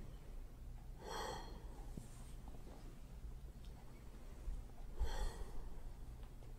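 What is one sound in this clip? An elderly woman breathes out heavily.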